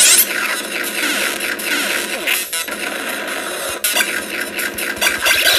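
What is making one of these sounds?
Retro video game sound effects beep and blast as a character shoots.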